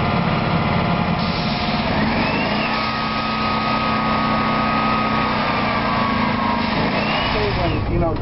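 A pressure washer sprays water against a wall with a loud steady hiss.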